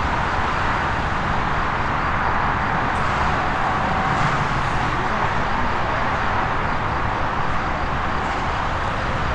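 A twin-engine jet airliner's engines roar as it taxis in the distance.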